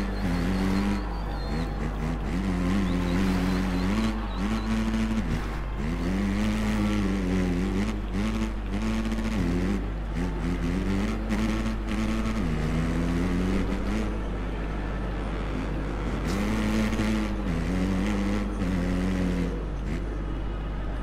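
A motorcycle engine revs loudly, rising and falling in pitch as gears change.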